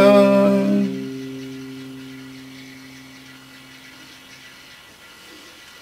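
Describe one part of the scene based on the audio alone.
An acoustic guitar chord is strummed loudly and rings out, slowly fading.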